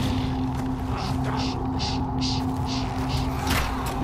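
Footsteps run quickly over rough ground.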